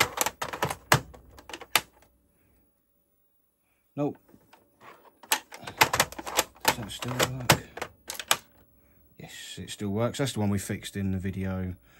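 A plastic game cartridge clicks and rattles as it is pulled out and pushed into a console.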